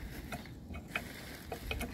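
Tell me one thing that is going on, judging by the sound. A screwdriver scrapes and clicks against metal.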